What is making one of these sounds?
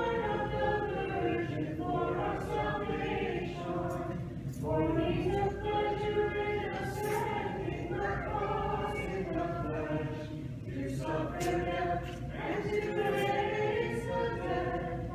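A man chants in a sustained voice in a large echoing hall.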